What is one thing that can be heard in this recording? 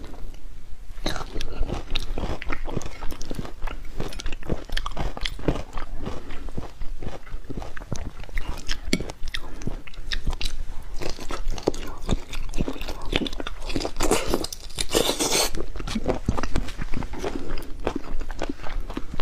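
Fingers pick at sticky food with wet squishing sounds.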